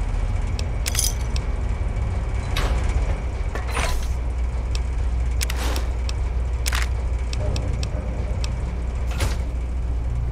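Short interface clicks sound as items are selected.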